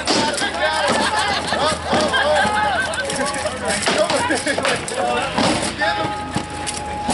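Weapons clash against wooden shields in a mock fight.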